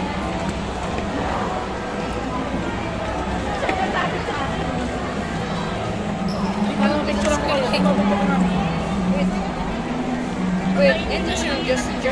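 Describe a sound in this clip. Young children call out in high voices.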